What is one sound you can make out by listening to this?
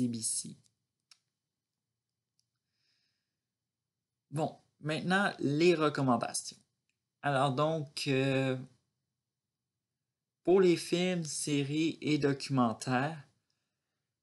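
A young man talks calmly and closely, as over a laptop microphone.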